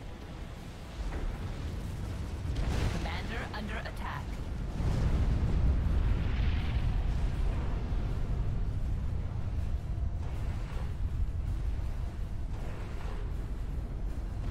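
Explosions boom and rumble with heavy low thuds.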